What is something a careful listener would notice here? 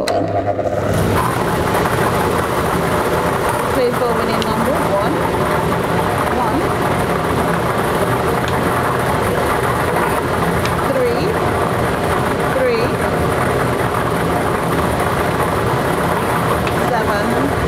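Lottery balls rattle and tumble inside a blower machine with a steady rush of air.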